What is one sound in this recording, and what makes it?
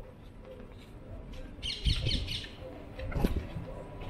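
Footsteps fall on a paved street.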